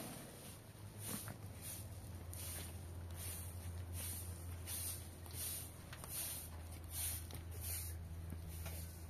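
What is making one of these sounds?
A straw broom sweeps with brisk, scratchy strokes.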